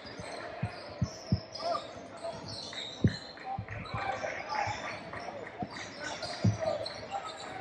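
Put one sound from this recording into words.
Spectators chatter in the stands.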